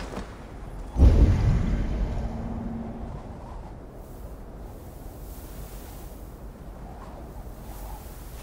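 Footsteps crunch on snow and wooden steps.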